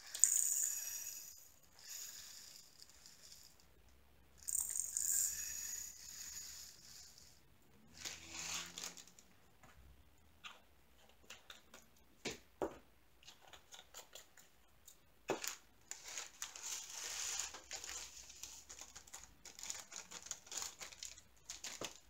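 A plastic bag crinkles and rustles in hands.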